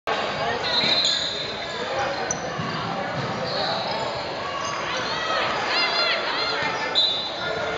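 Young players call out and shout in a large echoing hall.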